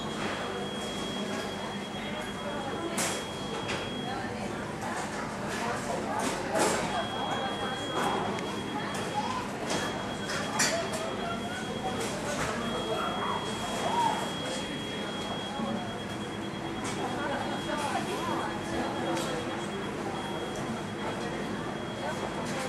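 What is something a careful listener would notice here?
The turbofan engines of a Boeing 737-300 idle with a high whine and a low rumble.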